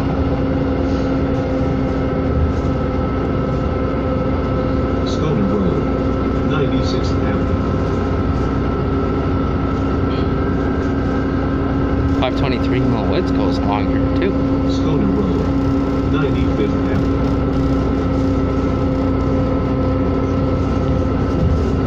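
A bus engine hums steadily from inside the moving bus.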